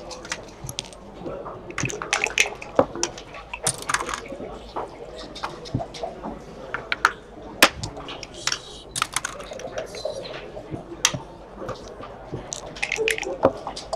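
Plastic checkers click and clack as they are moved on a board.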